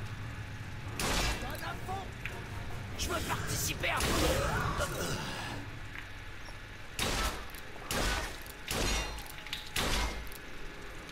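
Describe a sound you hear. Pistol shots bang loudly and sharply.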